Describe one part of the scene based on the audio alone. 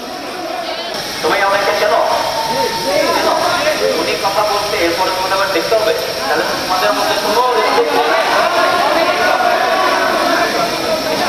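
A man speaks loudly through a megaphone.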